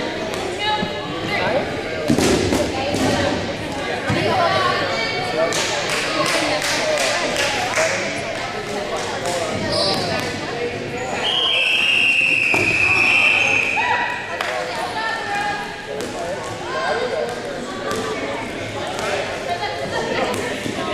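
Young women call out and chatter nearby.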